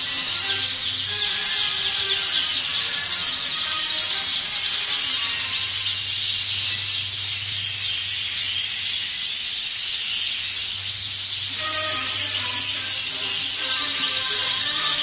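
Many small birds chirp and twitter all around in a busy chorus.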